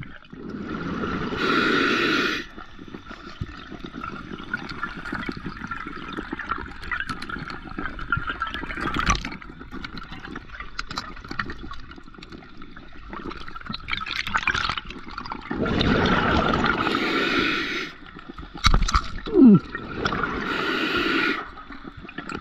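Air bubbles from a diver's regulator rush and gurgle in loud bursts underwater.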